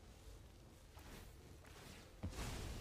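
A game effect whooshes as a card is played.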